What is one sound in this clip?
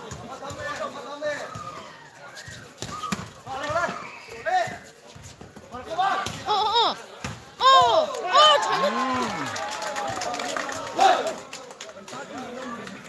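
Spectators shout and cheer loudly outdoors.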